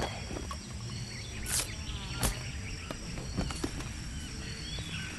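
Leafy bushes rustle as a figure pushes through them.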